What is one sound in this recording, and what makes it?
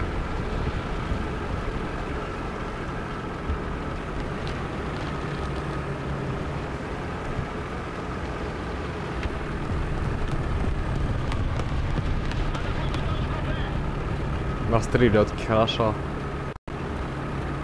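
Tank tracks clank and rattle over the ground.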